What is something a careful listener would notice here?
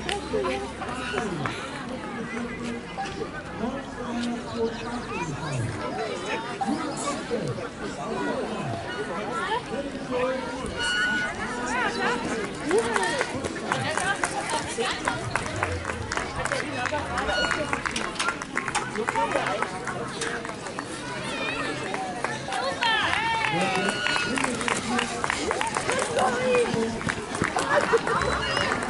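A crowd of adults and children talk and cheer outdoors.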